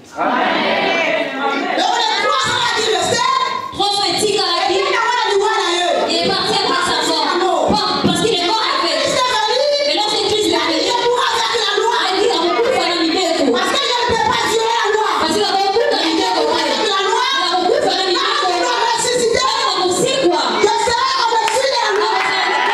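A woman sings loudly through a microphone in a large echoing hall.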